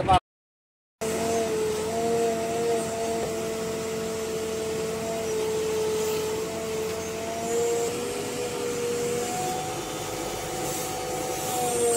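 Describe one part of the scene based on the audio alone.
A backhoe engine drones steadily with a hydraulic whine.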